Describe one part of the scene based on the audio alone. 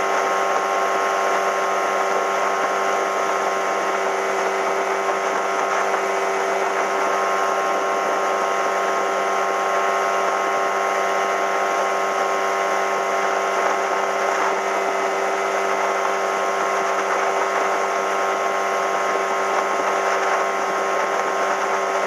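Water rushes and splashes along a moving boat's hull.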